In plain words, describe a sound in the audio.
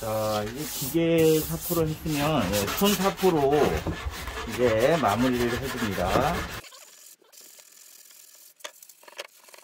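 Sandpaper scrapes back and forth over wood by hand.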